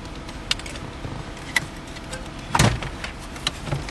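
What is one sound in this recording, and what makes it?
A car stereo unit knocks and rattles as it slides out of the dash.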